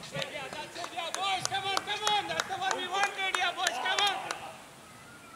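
Several men cheer and shout together outdoors.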